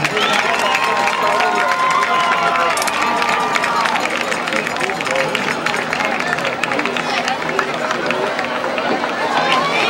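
A crowd of young women talk and squeal excitedly nearby.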